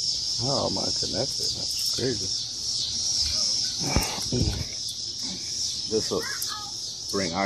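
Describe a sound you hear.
A man talks casually, close by.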